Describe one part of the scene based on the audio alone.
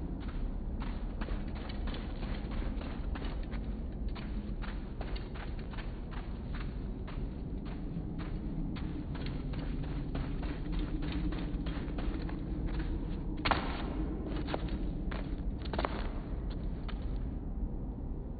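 Footsteps crunch quickly on sand and stone.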